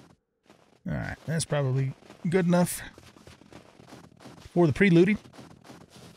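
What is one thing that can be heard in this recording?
A man talks through a microphone.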